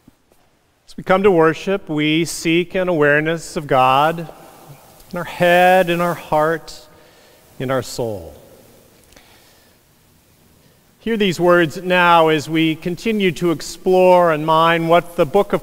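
A man speaks slowly and clearly through a microphone in a large echoing hall.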